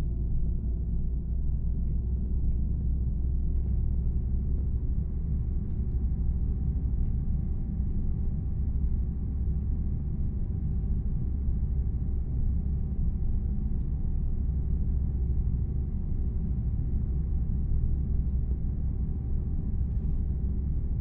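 A bus engine hums steadily at a low pitch while driving.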